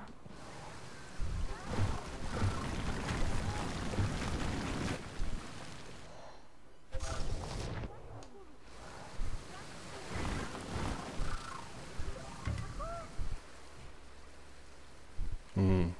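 Water rushes and splashes down a waterfall.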